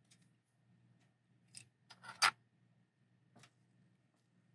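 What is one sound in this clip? A plastic car chassis clicks and clatters as it is handled and set down on a hard surface.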